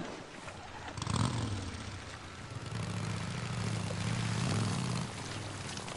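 A motorcycle engine starts and rumbles, then revs as the motorcycle rides off.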